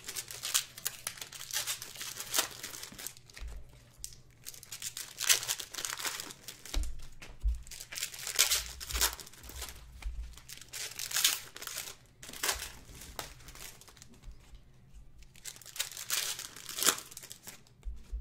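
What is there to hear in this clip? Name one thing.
Stacked trading cards shuffle and slap together.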